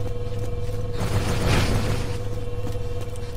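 An electric blast crackles and fizzes.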